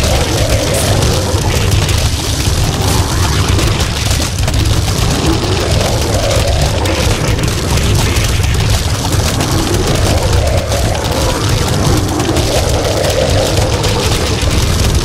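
Many cartoon plants fire rapid popping shots nonstop.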